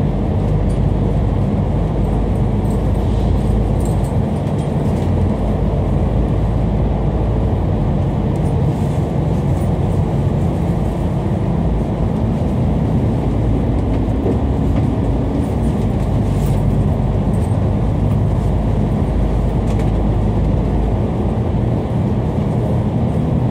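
A vehicle's engine rumbles steadily while driving through a tunnel.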